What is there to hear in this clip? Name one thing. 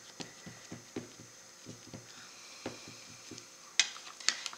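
A stamp block taps repeatedly on a hard surface.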